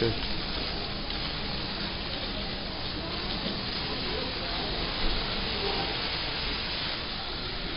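Water from a sprayer splashes steadily onto hair.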